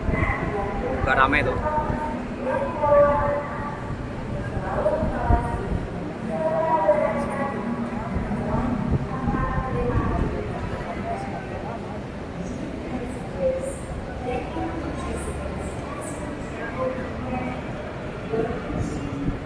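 A crowd of men and women chatters nearby in a large echoing hall.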